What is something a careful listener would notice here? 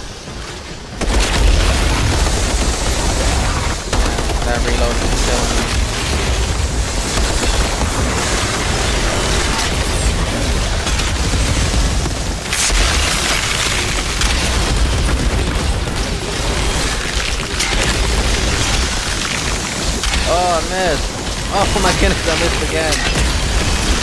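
Guns fire rapidly and loudly.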